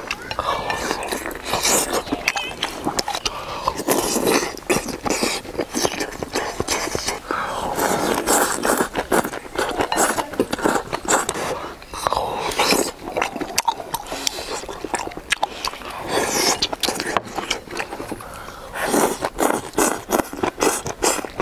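A young man chews food noisily up close.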